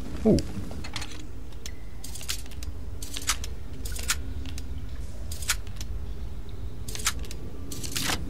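A lock pick clicks and scrapes inside a metal lock.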